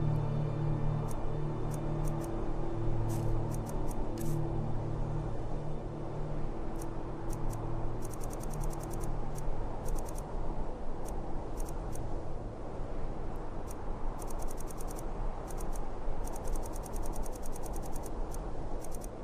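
A magic spell hums with a low, steady crackling drone.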